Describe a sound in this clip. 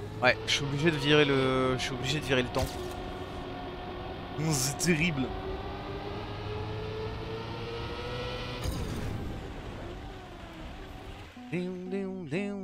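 A racing car engine hums steadily and revs.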